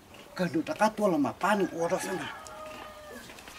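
An elderly man speaks with animation nearby.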